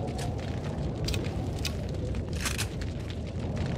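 A gun is reloaded with sharp metallic clicks.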